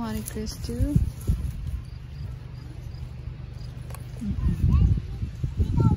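Leaves rustle as a hand handles apples on a branch.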